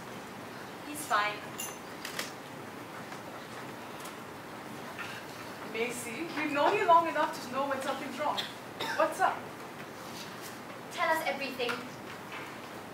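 Young women speak on a stage, their voices carrying through a hall.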